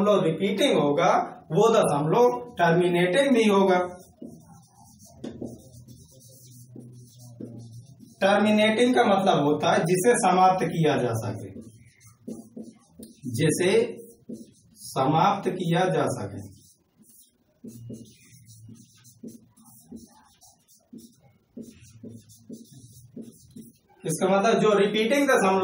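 A young man speaks calmly and clearly, close by, explaining at length.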